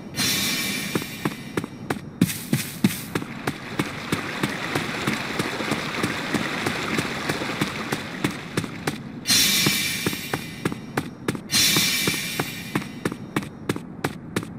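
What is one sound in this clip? Quick footsteps run across stone paving.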